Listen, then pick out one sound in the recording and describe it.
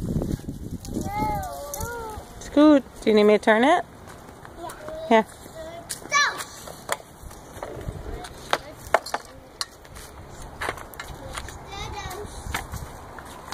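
A toddler girl babbles and squeals nearby.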